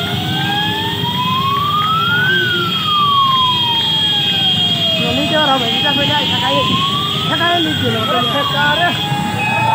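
Many motorcycle engines rumble close by.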